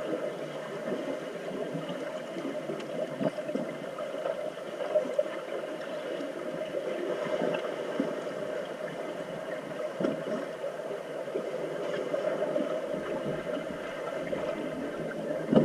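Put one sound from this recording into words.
Muffled underwater splashing and churning of swimmers goes on throughout.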